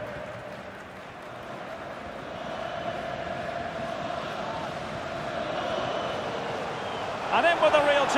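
A stadium crowd roars steadily, slowly growing louder.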